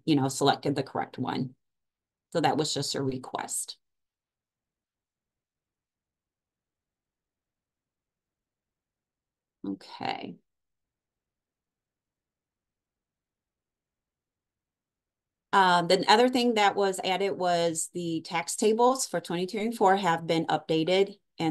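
A young woman talks calmly into a microphone, heard through an online call.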